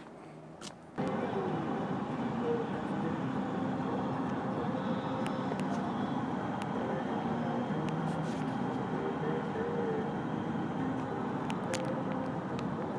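Road noise rumbles steadily from a car driving fast on a highway.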